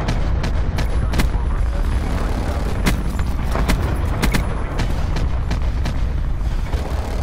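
An aerial gunship's cannon fires in heavy booming bursts.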